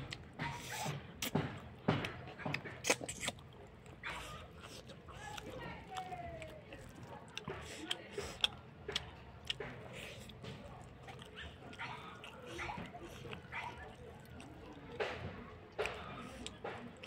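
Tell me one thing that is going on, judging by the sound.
A woman chews and smacks her lips loudly, close by.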